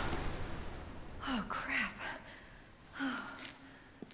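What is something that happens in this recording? A young woman speaks quietly in dismay.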